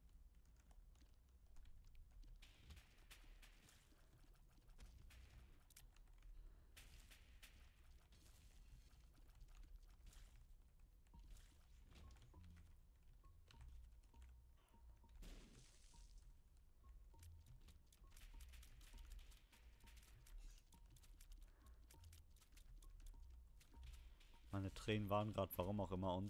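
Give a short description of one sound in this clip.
Small game shots pop and splat in quick succession.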